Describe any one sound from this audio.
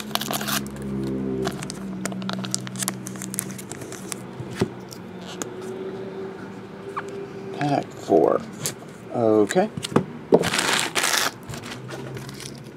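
Hard plastic card cases click and tap as hands handle them.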